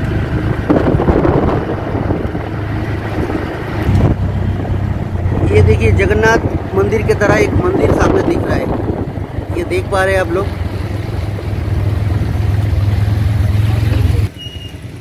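A small vehicle engine rumbles steadily while driving along a road.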